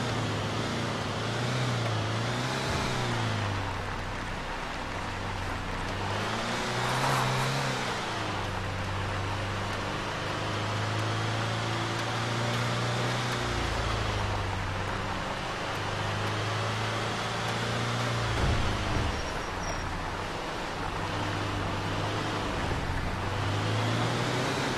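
A truck engine hums and revs, rising and falling as it drives.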